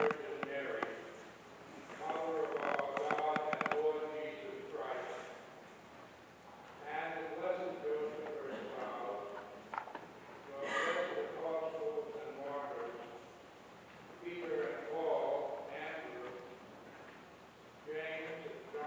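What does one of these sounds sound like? An elderly man chants slowly in a large echoing hall.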